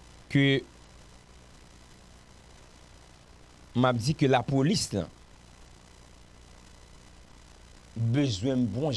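A man speaks calmly and close into a microphone, in short bursts with pauses.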